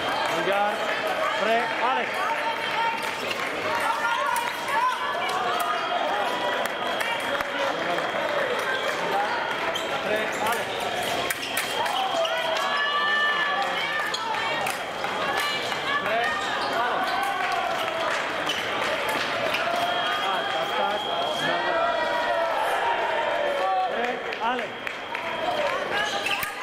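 A crowd of spectators chatters and calls out throughout, in a large echoing hall.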